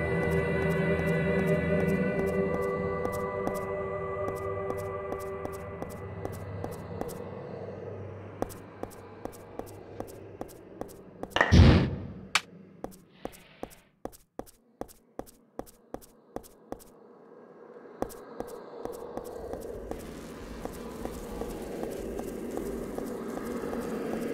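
Footsteps tread steadily on the ground.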